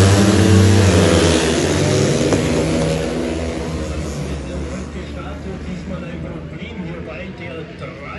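Motorcycle engines roar loudly as they race past, then fade into the distance.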